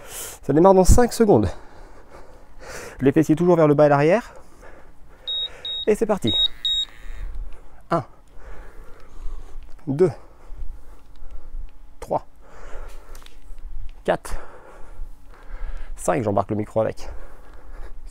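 A man speaks clearly and calmly, close by.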